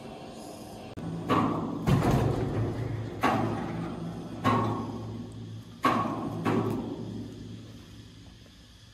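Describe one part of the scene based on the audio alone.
A sawmill carriage motor hums steadily.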